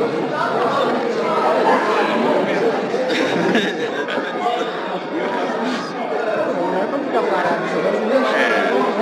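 A group of men talk and laugh together close by.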